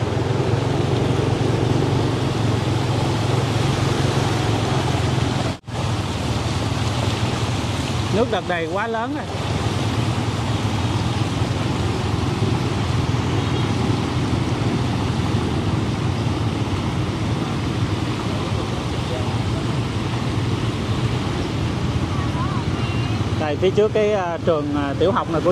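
Motorbike engines hum steadily nearby.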